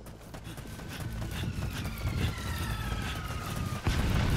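Footsteps run over dirt and gravel.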